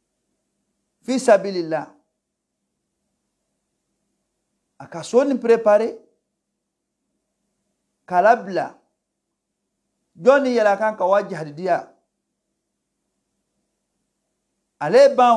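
A middle-aged man speaks calmly into a close microphone in short phrases with long pauses.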